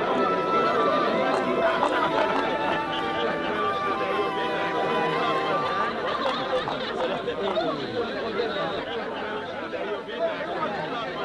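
A crowd of men and women murmurs and calls out close by.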